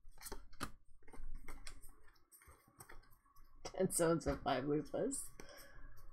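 Cards slide and flick against each other.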